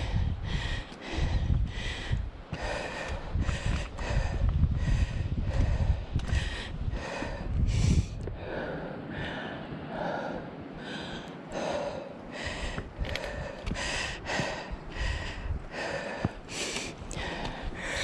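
Footsteps climb stone steps at a steady pace.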